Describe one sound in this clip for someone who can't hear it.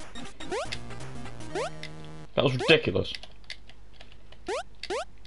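Chiptune game music plays steadily.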